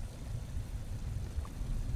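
Thick liquid bubbles and churns with a low, steady rumble.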